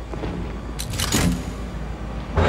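A key turns in a door lock with a click.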